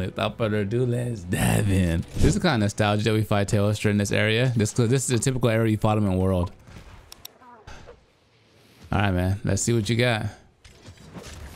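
A young man talks excitedly into a headset microphone, close up.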